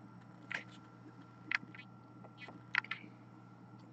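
A card taps softly against a glass surface.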